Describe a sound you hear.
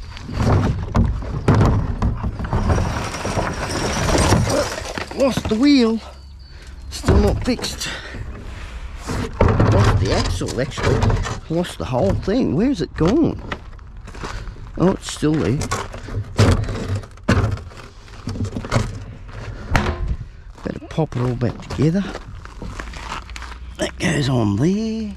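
A plastic bin knocks and thuds as it is handled.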